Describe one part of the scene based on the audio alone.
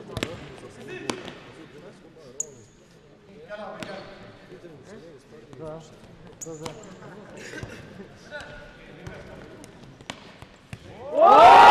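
A ball is kicked with dull thuds on a hard floor.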